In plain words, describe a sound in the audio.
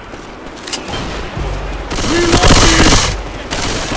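A pistol fires a quick run of shots.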